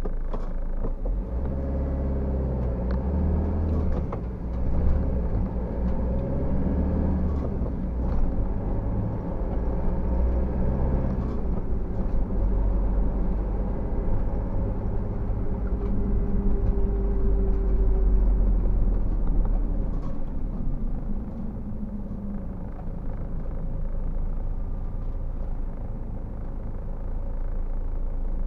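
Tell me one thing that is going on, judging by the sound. Tyres roll over wet asphalt.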